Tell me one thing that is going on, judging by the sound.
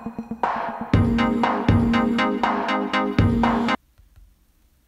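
Upbeat game music plays from a tablet's speaker and stops abruptly.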